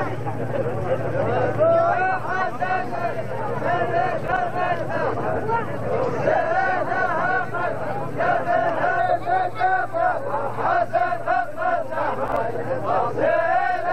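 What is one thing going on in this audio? A group of men chant together loudly outdoors.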